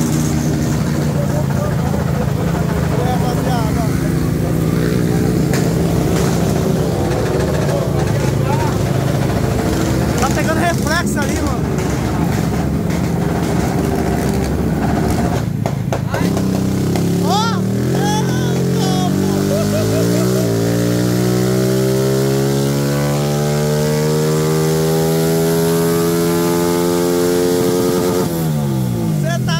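A motorcycle engine roars loudly up close.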